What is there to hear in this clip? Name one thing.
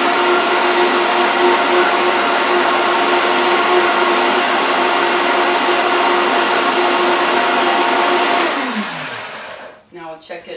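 A blender whirs loudly, then winds down.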